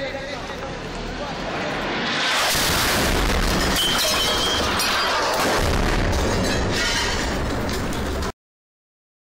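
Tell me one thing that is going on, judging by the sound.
Gunshots crack nearby outdoors.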